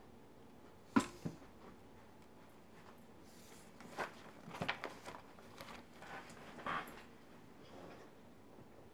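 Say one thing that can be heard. Book pages rustle as they are handled.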